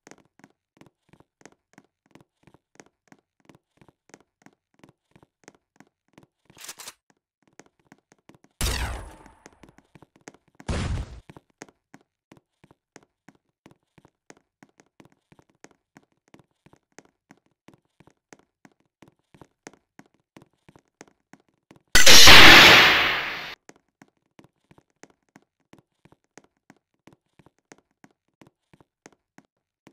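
Quick light footsteps patter steadily.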